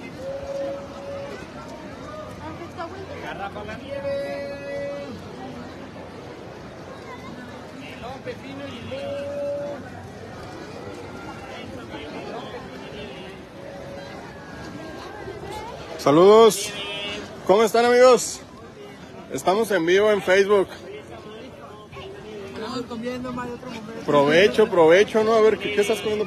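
A crowd murmurs outdoors in an open square.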